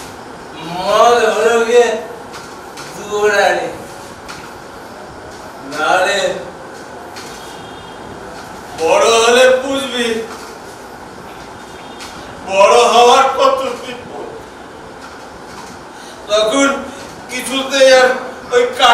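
A man declaims dramatically through a loudspeaker, in short bursts with pauses between.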